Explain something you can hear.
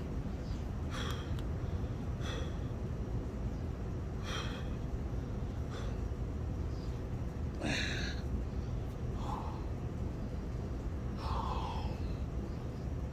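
A young man breathes out sharply and heavily while doing push-ups close by.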